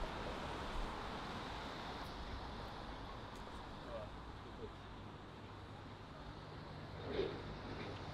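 Wind blows steadily outdoors by the water.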